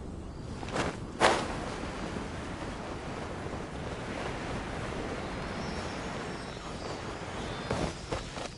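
Wind rushes steadily while gliding through the air.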